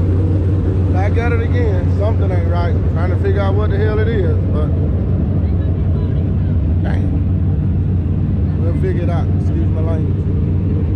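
A man talks outdoors nearby.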